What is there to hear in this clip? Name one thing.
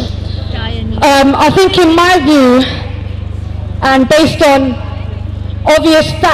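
A young woman sings loudly into a microphone over a loudspeaker.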